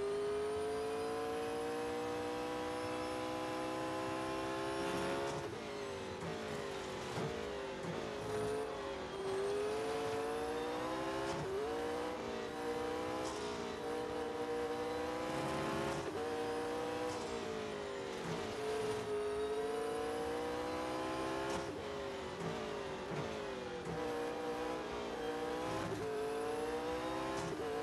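Tyres squeal on tarmac through the turns.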